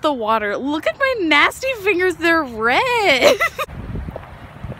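A young woman speaks cheerfully and with animation close to the microphone.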